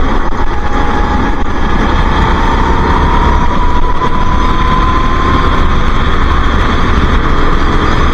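A kart engine whines loudly up close, its pitch slowly rising.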